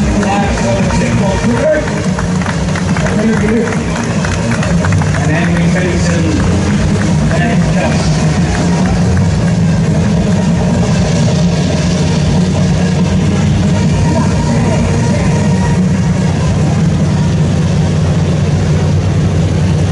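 A big tractor engine rumbles loudly and steadily close by.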